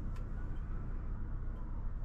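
A finger taps on a touchscreen.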